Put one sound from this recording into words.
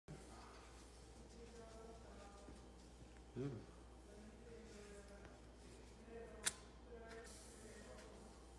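A paper towel rubs and smears across a hard surface.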